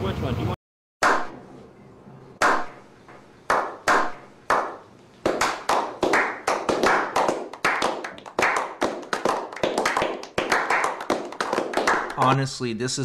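A small group of men claps hands, slowly at first and then faster.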